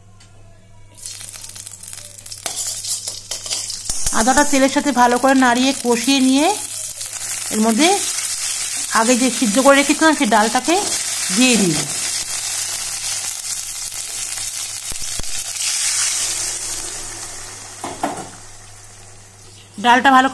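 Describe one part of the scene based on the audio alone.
Hot oil sizzles loudly in a pan.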